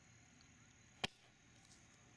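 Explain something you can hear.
A golf iron clicks crisply against a ball, chipping it off a hitting mat.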